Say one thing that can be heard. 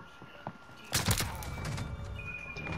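A submachine gun fires a short burst.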